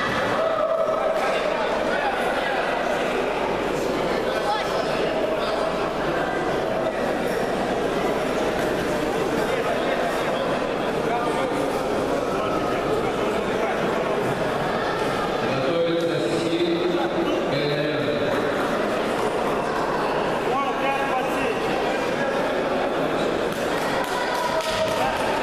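A crowd of spectators chatters and shouts throughout a large echoing hall.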